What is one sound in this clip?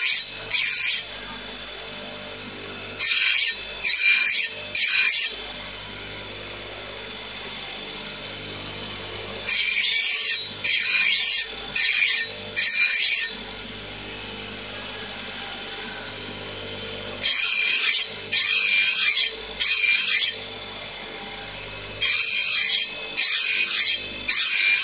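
A bench grinder hums steadily.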